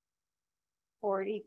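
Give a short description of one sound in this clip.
A man speaks briefly through an online call.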